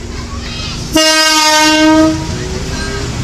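A train horn sounds loudly once.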